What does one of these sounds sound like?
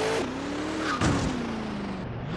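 A car bumps into something with a heavy thud.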